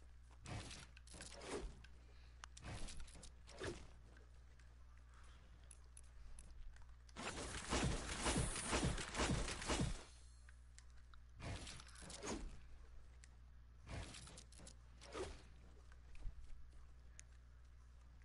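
Video game sound effects thump and clatter in short bursts.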